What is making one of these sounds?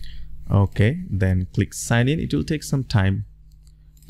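A mouse button clicks.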